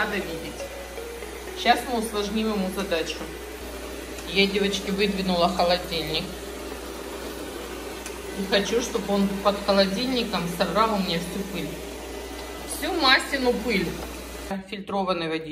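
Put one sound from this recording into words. A robot vacuum hums steadily as it moves across the floor.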